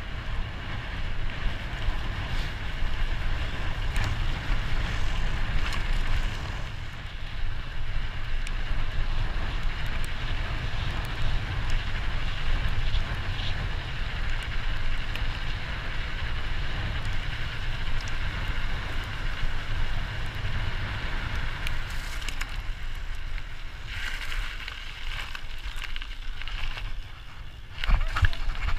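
Wind buffets loudly across a microphone.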